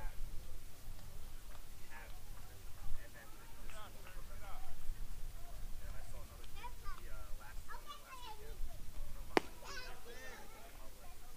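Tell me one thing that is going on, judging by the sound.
Distant young men shout and call out across an open field.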